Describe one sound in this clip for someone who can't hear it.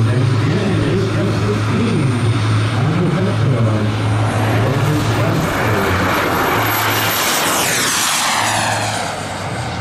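A model jet engine whines loudly as it speeds down the runway and passes close by.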